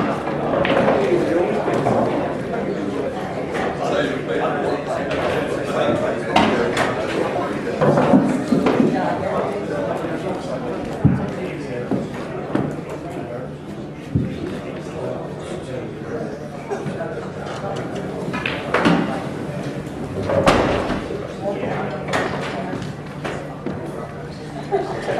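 Men murmur and talk quietly nearby.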